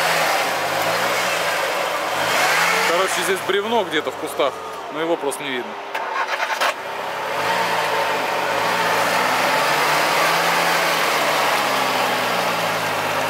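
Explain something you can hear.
An engine revs and strains as an off-road vehicle drives through mud.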